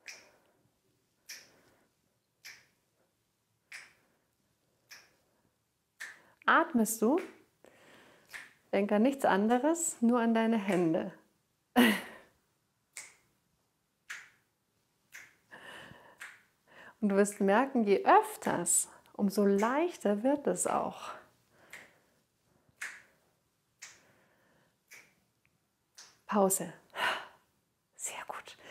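A woman snaps her fingers in a steady rhythm.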